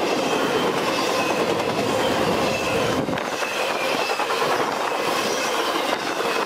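Metal wheels squeal faintly against the rails.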